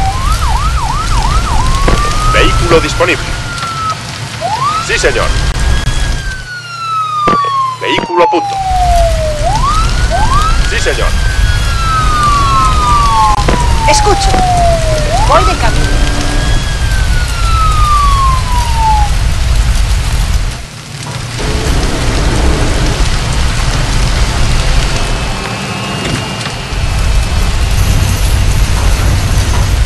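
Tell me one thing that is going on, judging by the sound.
Fire roars and crackles with a low rumble.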